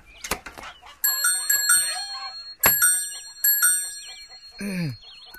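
A bicycle bell rings several times.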